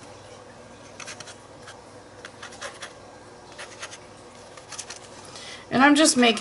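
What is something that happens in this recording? A palette knife scrapes across paper.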